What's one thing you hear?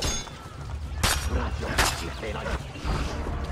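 Heavy blows land in a scuffle.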